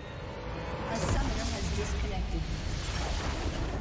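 A large structure explodes with a deep, rumbling blast.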